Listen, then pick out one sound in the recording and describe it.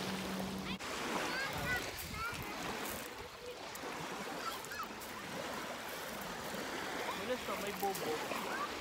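Small waves lap gently on a pebbly shore.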